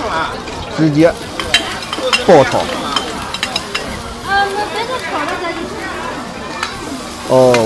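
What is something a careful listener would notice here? Food sizzles loudly as it hits hot oil.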